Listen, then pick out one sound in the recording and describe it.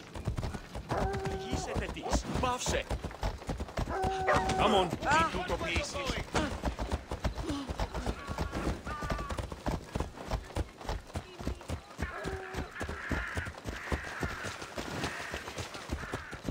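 Horse hooves clop quickly on stone and gravel.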